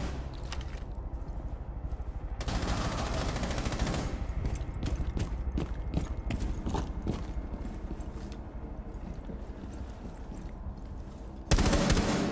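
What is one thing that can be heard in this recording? Footsteps tread quickly on a hard floor.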